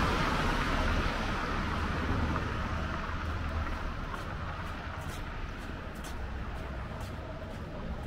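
A car drives away on a wet road, its tyres hissing as it fades.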